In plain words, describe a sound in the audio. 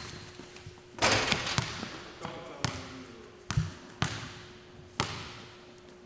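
A basketball bounces hard on a wooden floor, echoing.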